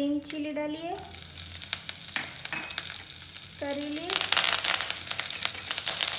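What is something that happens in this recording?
Fresh leaves hit hot oil and sizzle loudly.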